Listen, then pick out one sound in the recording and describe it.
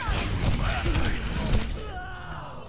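A bow twangs as arrows are loosed in rapid succession.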